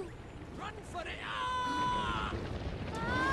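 A young boy speaks anxiously.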